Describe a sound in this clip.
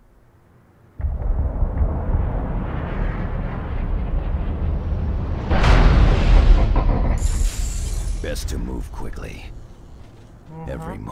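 Explosions rumble and roar loudly without pause.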